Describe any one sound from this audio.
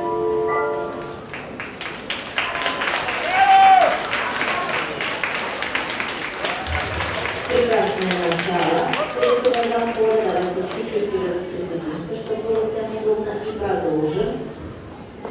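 A crowd of men and women chatters in a large echoing hall.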